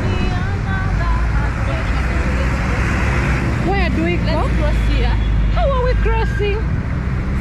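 A bus engine rumbles as the bus drives past close by.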